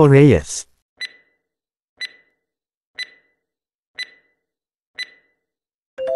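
A timer ticks once a second.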